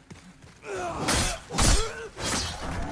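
A sword slashes and strikes with a metallic clang.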